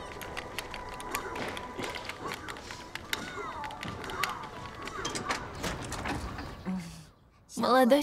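Video game sounds play from a television.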